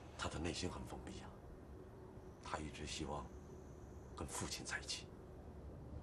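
A young man speaks quietly and calmly nearby.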